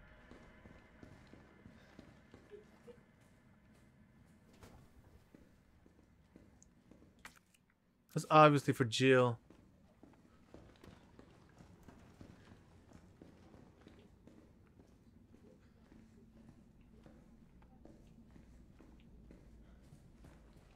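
Footsteps tap on a hard floor indoors.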